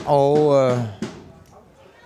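A ball thuds off a kicking foot.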